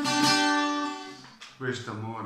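An acoustic guitar chord rings out and fades.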